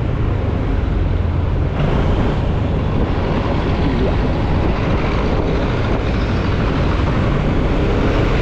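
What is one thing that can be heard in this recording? Wind buffets loudly past the vehicle.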